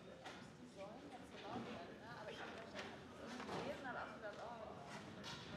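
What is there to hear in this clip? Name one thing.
A man speaks calmly into a microphone, heard over loudspeakers.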